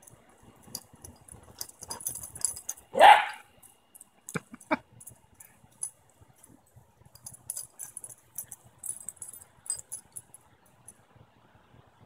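Small dogs scamper and rustle through grass.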